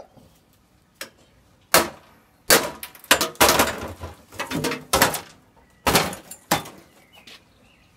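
A metal canister clanks and scrapes as it is handled on a metal trolley.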